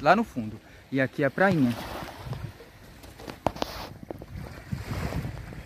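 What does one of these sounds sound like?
Gentle water laps against rocks.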